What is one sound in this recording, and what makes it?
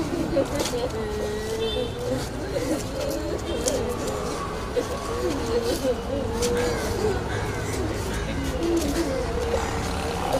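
Women wail and sob loudly nearby.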